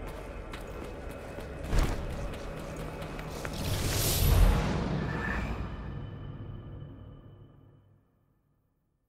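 Game music and effects play, then fade out to silence.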